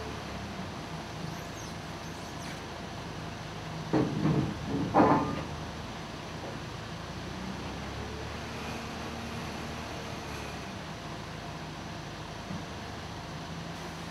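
A forklift's diesel engine hums steadily nearby.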